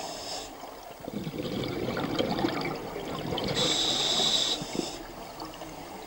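Air bubbles gurgle and rumble underwater.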